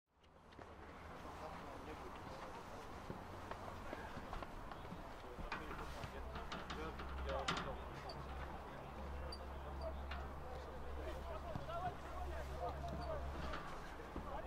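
Men's voices call and chatter across an open field.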